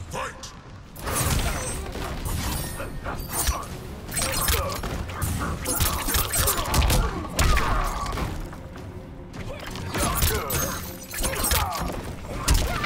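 Punches and kicks land with heavy, sharp thuds in quick bursts.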